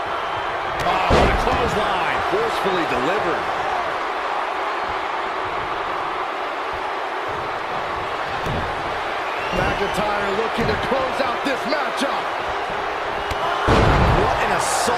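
A wrestler slams heavily onto the ring mat with a loud thud.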